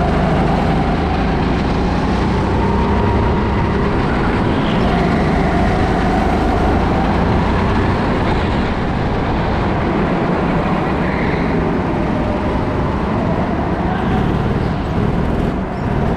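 Tyres hiss and rumble on a smooth floor.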